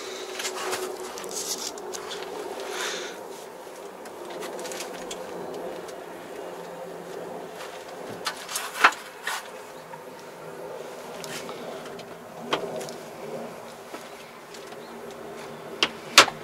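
A tractor engine hums steadily from inside the cab.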